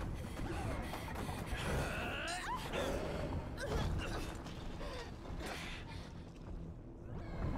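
Heavy blows and crashes thud during a fight.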